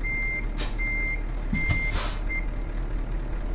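A truck's reversing alarm beeps in short bursts and then stops.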